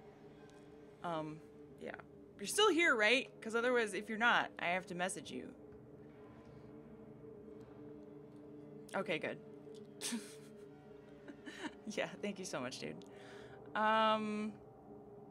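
A young woman talks with animation, close to a microphone.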